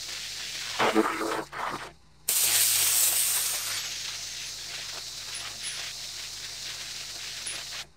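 A pressure washer sprays water hard onto concrete with a steady hiss.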